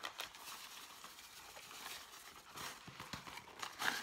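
Dry powder pours into a bowl of food.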